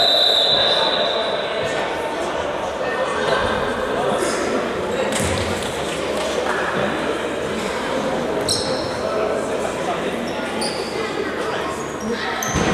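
Players' shoes squeak on a hard floor in a large echoing hall.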